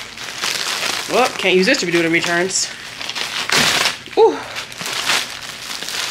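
Plastic bags rustle and crinkle.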